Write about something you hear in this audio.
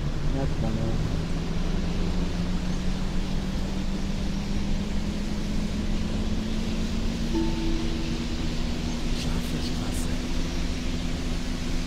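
Tyres roll on a wet road.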